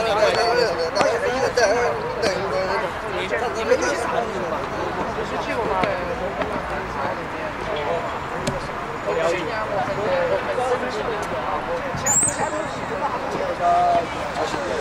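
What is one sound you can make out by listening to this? A crowd of young men and women chat and call out nearby outdoors.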